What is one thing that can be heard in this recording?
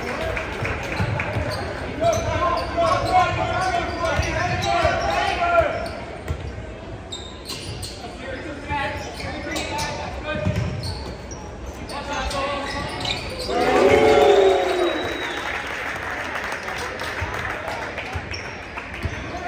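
A crowd of spectators cheers and chatters.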